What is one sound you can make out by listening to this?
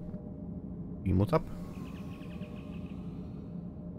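A sci-fi transporter beam shimmers with a bright rising whoosh.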